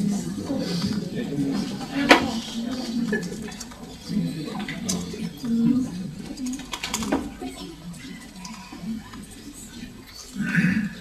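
An audience murmurs and shifts in their seats.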